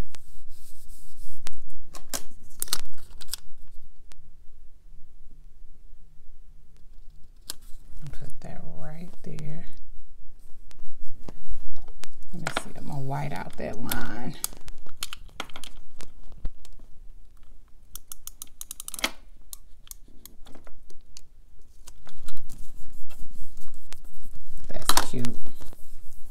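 Paper rustles and crinkles as stickers are peeled and pressed down.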